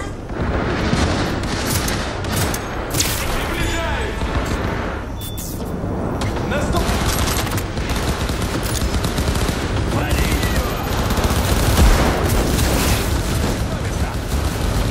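Pistol shots fire rapidly and loudly.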